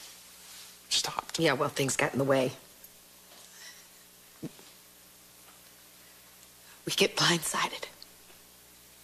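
A middle-aged woman speaks sharply, close by.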